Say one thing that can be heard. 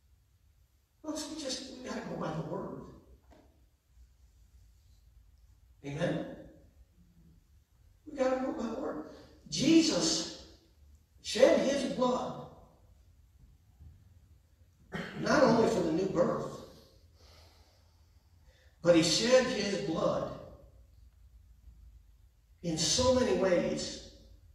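A man speaks calmly in phrases with pauses, heard in a quiet echoing hall.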